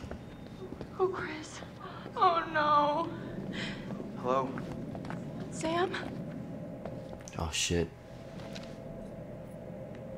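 A young woman speaks fearfully, close by.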